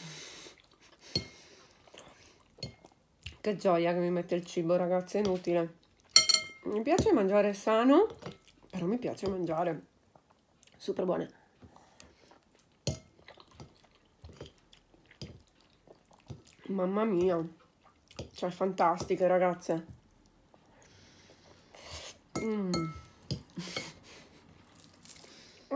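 A woman chews and smacks her lips while eating.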